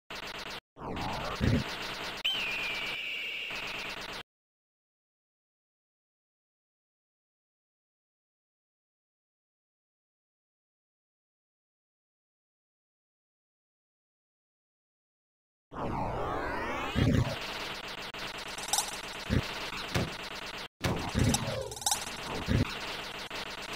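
Electronic shots and explosions burst in quick succession.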